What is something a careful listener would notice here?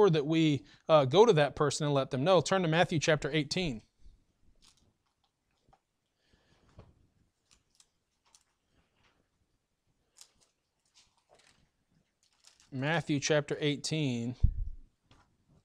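A middle-aged man speaks slowly and firmly through a microphone, pausing between phrases.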